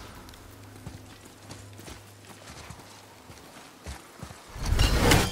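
Heavy footsteps tread through grass and leaves.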